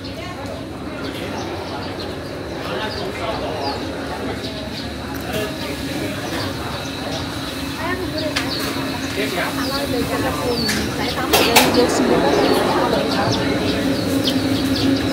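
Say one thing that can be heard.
Men and women chat nearby, their voices growing louder on approach.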